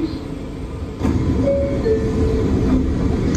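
Train doors slide shut.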